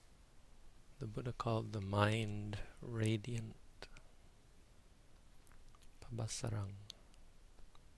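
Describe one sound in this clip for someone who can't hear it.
A man speaks slowly and calmly nearby, with pauses.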